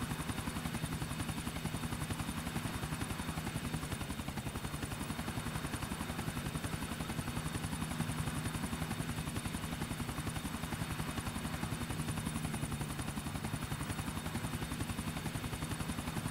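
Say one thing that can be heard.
A helicopter's rotor thumps rapidly and steadily overhead.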